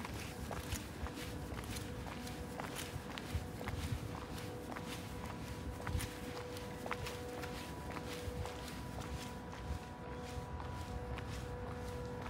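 Footsteps tap on a paved path.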